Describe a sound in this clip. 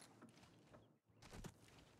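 A gun's metal parts click as it is handled.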